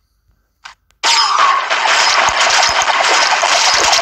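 Game combat effects burst out in a loud, busy clatter.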